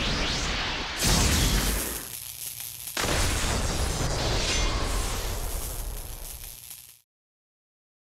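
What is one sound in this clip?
Debris bursts and scatters with a heavy blast.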